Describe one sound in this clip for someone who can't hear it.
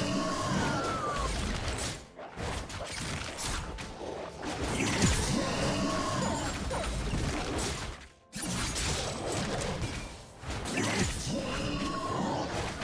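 Fantasy game sound effects clash, whoosh and crackle in a running fight.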